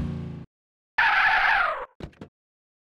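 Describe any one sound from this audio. Car tyres screech on pavement.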